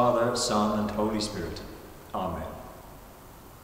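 An elderly man speaks calmly and clearly into a microphone in an echoing hall.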